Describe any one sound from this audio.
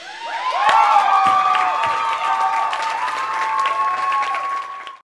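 Electronic tones glide and whine loudly.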